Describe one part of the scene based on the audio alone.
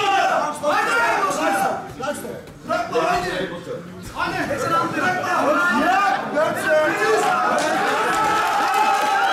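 A crowd of men shouts and cheers loudly in an echoing room.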